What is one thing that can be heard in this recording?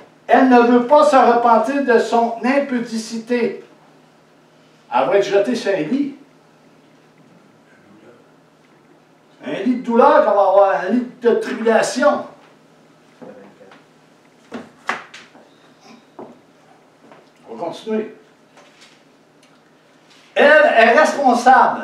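A man reads aloud with feeling, close by in a small room.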